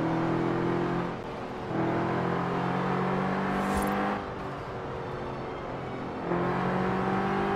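A car engine hums steadily at speed, easing off and picking up again.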